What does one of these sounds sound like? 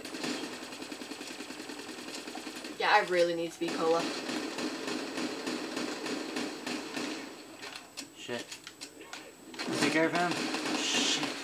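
Automatic gunfire rattles rapidly from a video game.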